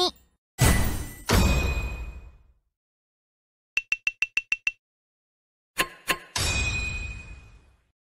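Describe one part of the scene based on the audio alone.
A bright electronic whoosh swells and rings out.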